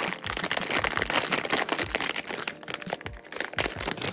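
A plastic bag tears open.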